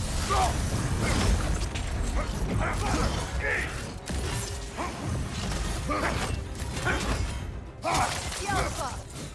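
Heavy blows clash and thud in a fight.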